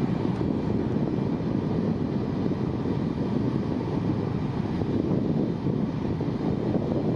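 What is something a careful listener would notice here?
A heavy truck engine rumbles steadily nearby.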